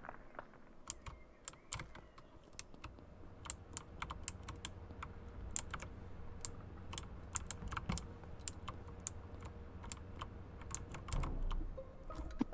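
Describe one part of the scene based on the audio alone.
Quick light footsteps patter steadily.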